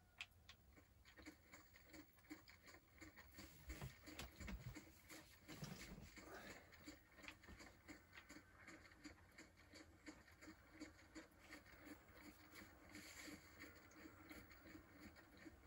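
Footsteps tread steadily through grass and dirt.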